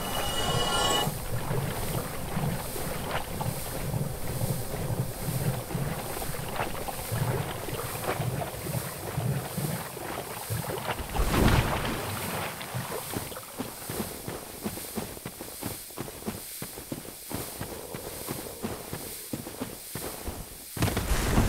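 Heavy footsteps and shuffling crunch over the ground.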